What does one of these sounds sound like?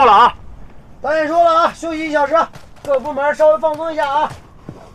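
A man speaks up loudly to a group.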